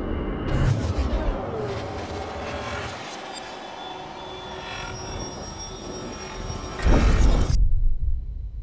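Dark electronic music swells under a game's intro and ends in a deep boom.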